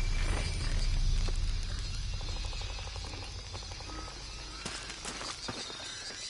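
Footsteps crunch on leaves and dirt.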